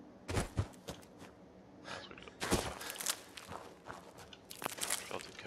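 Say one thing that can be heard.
Footsteps crunch on dry grass and rock.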